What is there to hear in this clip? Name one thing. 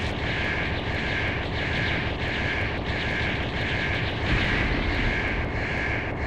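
Explosions boom and crackle in a video game.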